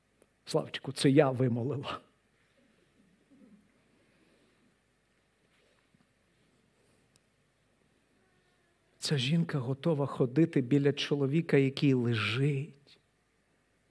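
A middle-aged man speaks calmly through a microphone in a large hall, pausing between phrases.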